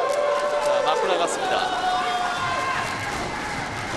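A young man shouts with excitement.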